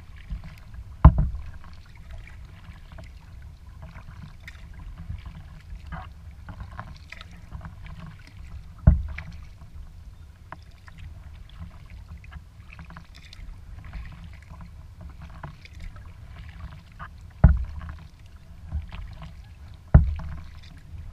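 A paddle knocks against a kayak's hull a few times.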